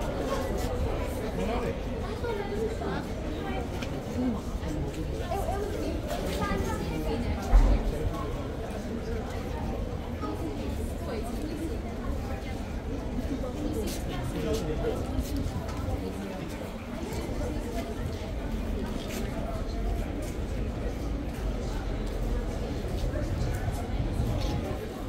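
Young children talk excitedly close by.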